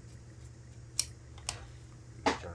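Metal scissors clunk down on a table.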